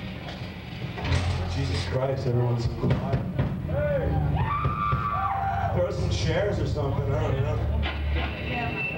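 Drums pound in a steady beat.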